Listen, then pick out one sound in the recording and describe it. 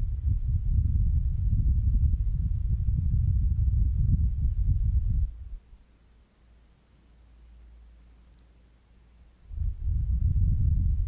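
A young woman blows gently into a microphone up close, making a deep, rumbling whoosh.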